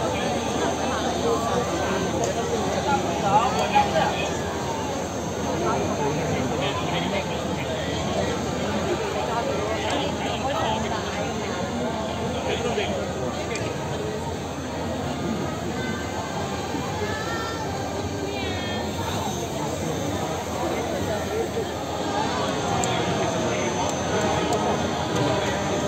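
A large crowd chatters and murmurs all around outdoors.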